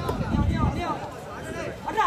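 A volleyball is struck with a slap.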